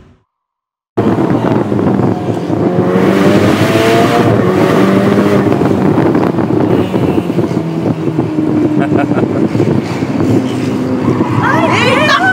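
Wind rushes past an open car as it drives.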